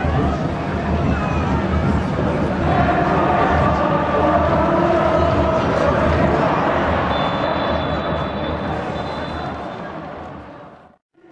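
A large stadium crowd roars and murmurs loudly outdoors.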